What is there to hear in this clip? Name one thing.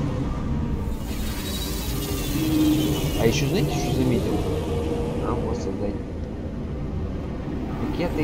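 A spaceship rushes through a docking tunnel with a loud whoosh.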